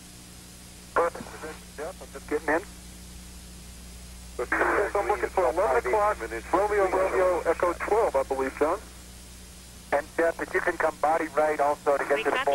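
A man speaks calmly over a thin, crackly radio link.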